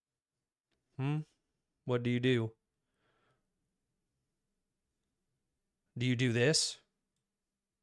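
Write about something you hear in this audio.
A young man speaks briefly into a close microphone, with pauses.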